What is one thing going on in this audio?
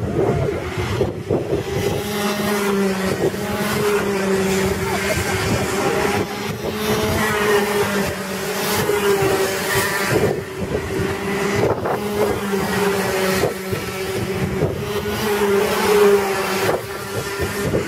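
Kart engines buzz and whine loudly as karts race past outdoors.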